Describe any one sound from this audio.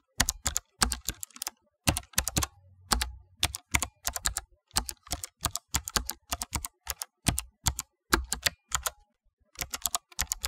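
Keys clack on a keyboard in quick, uneven bursts of typing.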